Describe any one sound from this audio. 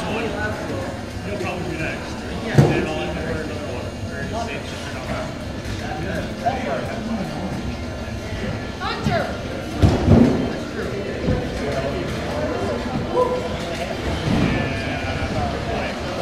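Several people talk and chatter in a crowd.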